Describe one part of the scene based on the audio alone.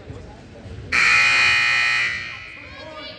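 A scoreboard buzzer blares loudly in an echoing gym.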